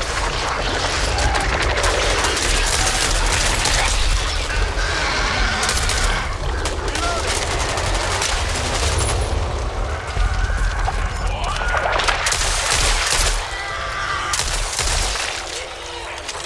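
Rifle gunshots crack rapidly and loudly, again and again.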